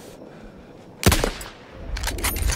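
A sniper rifle fires a single loud, sharp shot that echoes briefly.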